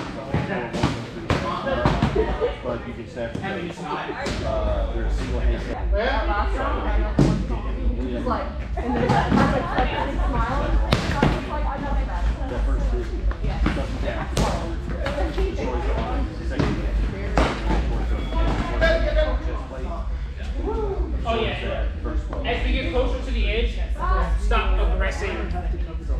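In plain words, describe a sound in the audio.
Padded foam swords thump and clack against each other and against shields.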